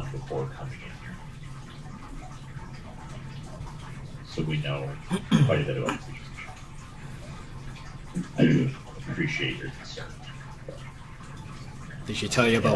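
Young men talk casually over an online call.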